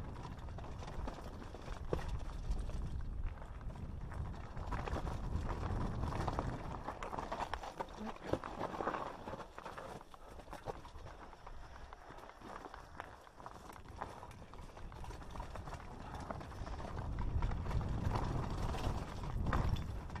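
Wind buffets past while the mountain bike rides fast.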